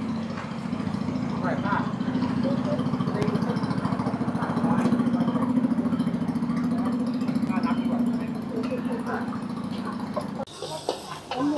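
A boat engine chugs steadily nearby.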